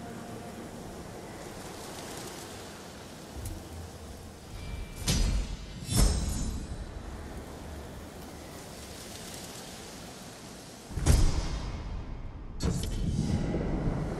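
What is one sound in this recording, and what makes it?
Wind blows steadily outdoors through tall grass.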